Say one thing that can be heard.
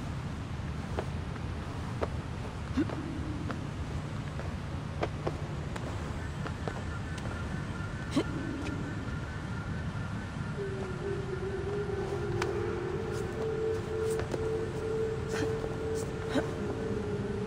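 Hands and feet knock and scrape against stone as a climber clambers up a wall.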